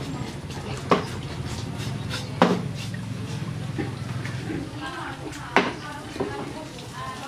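A metal pot clanks.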